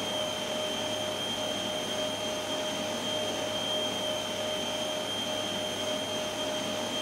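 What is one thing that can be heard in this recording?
Jet engines whine steadily at idle nearby.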